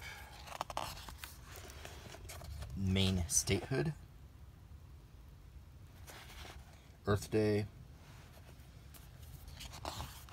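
Pages of a book rustle as they are flipped by hand.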